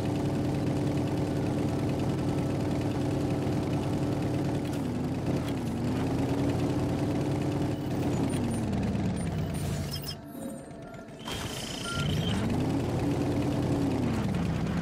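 A vehicle engine hums and revs up and down.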